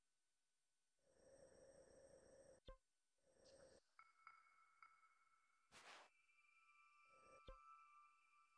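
Soft electronic menu sounds whoosh and chime.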